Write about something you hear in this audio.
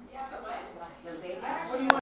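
Other women chat in the background.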